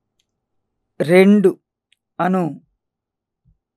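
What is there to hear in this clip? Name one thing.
A middle-aged man speaks calmly and clearly into a close microphone.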